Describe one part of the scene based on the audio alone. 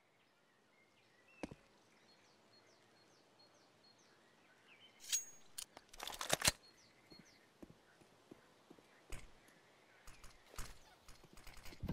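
Footsteps tap quickly on stone.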